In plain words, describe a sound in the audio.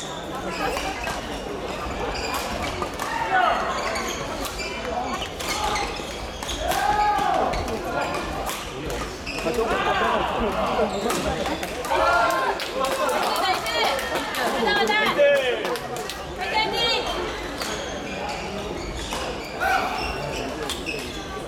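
Badminton rackets hit a shuttlecock with sharp pops.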